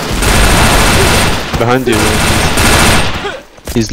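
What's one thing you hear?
A video game assault rifle fires a short burst.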